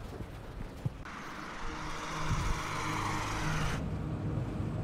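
A car engine roars.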